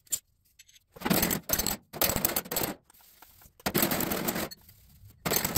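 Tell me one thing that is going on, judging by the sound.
A sanding block scrapes back and forth over a rough surface in quick bursts.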